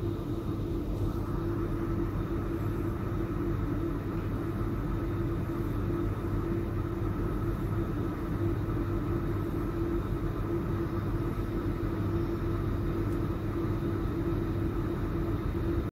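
A train's motors hum and its wheels rumble steadily from inside the carriage.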